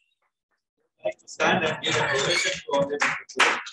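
A small group of people clap their hands.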